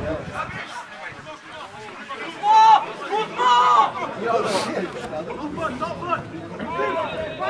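Several men close by talk and shout loudly outdoors.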